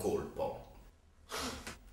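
A young man speaks close by.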